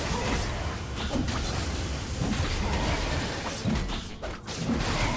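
Game spell effects crackle and boom in a fight.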